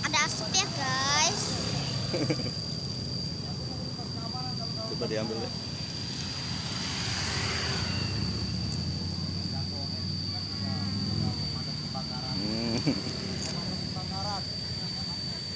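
A young child talks close by.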